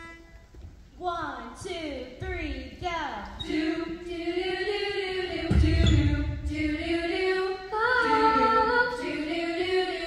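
A group of young women sing together in close harmony, in a large echoing hall.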